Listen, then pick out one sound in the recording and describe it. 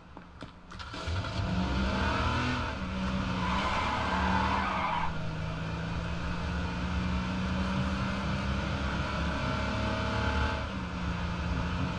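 A car engine hums steadily and revs as it drives.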